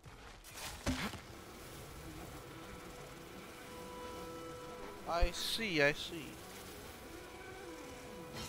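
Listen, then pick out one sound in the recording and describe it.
A rope hums and rattles as someone slides along it.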